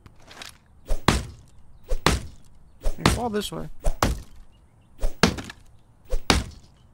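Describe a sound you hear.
An axe chops into a tree trunk with sharp, repeated thuds.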